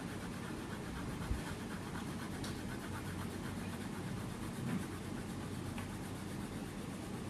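A crayon scratches back and forth on paper in quick, steady strokes.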